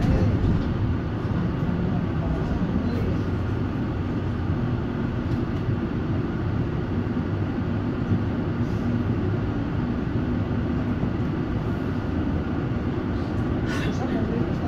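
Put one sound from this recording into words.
A passing tram rumbles by close outside.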